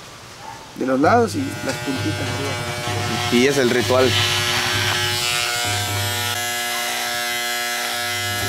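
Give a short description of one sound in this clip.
Electric hair clippers buzz steadily.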